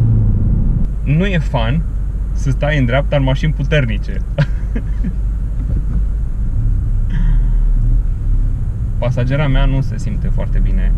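A man talks casually and cheerfully close by inside a car.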